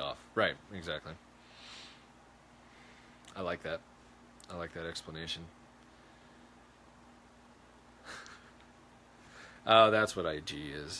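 A young man speaks calmly and close up, pausing between phrases.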